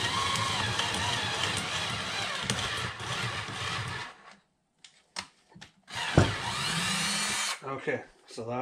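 A power drill whirs in short bursts close by.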